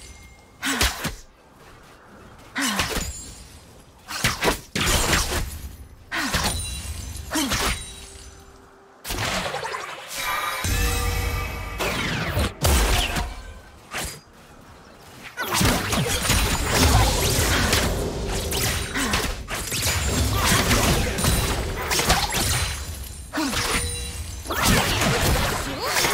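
Spell effects burst and crackle in a fantasy battle game.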